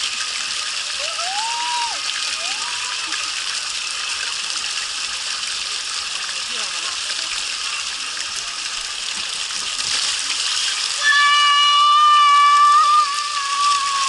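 Water rushes steadily down a plastic slide.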